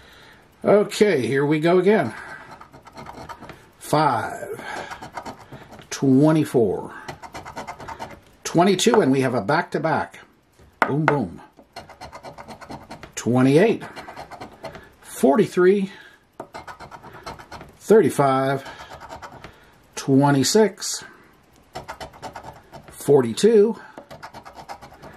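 A coin scratches rapidly at a card.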